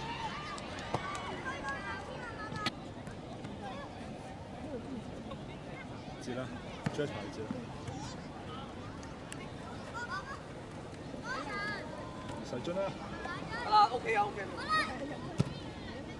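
Children shout and call out excitedly outdoors.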